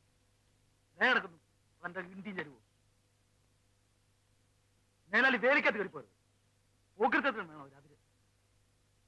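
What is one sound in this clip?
A man speaks in short, tense phrases nearby.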